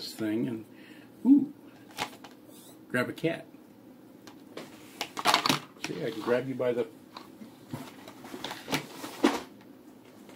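Cardboard packaging rustles and taps.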